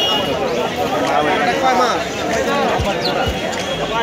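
Small caged birds chirp and twitter nearby.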